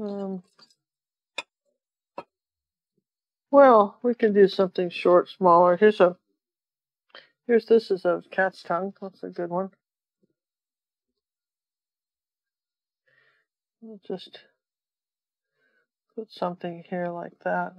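An elderly woman talks calmly into a nearby microphone, in bursts with pauses.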